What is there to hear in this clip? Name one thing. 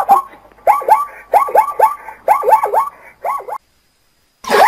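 A zebra gives repeated high barking yelps.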